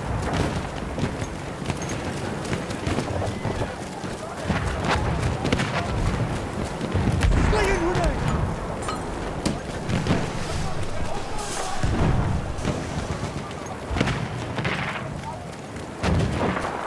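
Explosions boom nearby, over and over.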